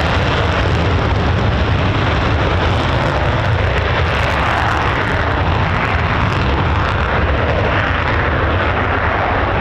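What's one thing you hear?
A jet engine roars loudly with afterburner as a fighter jet accelerates down a runway.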